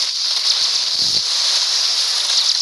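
A wave of water crashes with a loud splash.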